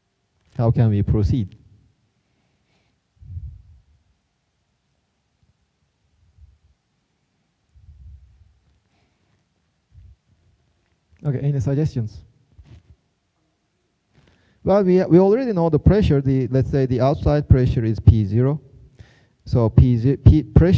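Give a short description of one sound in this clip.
A man lectures through a microphone in a large echoing hall, speaking in bursts with pauses.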